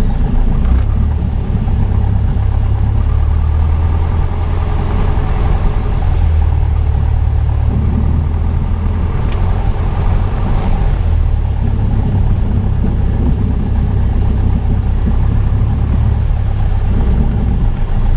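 A small plane's engine drones loudly and steadily inside the cabin.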